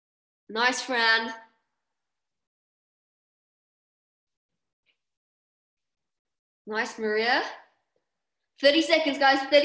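A young woman speaks with animation, close to a microphone, in short bursts.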